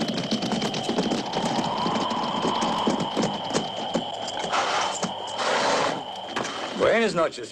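Horses gallop and hooves thud on dry ground.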